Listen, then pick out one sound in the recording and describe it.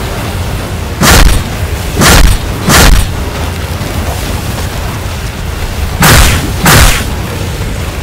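Heavy blows thud loudly, one after another.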